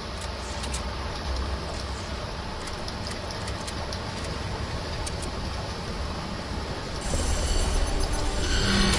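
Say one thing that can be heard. Footsteps patter quickly across the ground.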